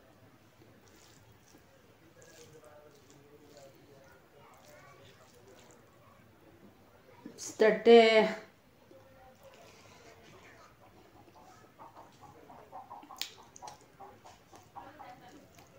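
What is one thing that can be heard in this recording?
Fingers squish and scrape through food on a plate.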